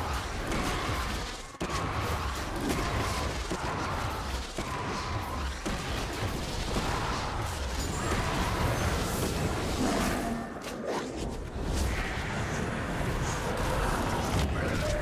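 Weapons clash and magic blasts burst in a fast fight.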